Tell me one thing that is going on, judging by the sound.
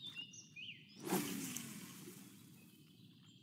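A fishing rod swishes through the air in a quick cast.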